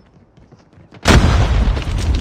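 Heavy machine gun fire roars in fast bursts.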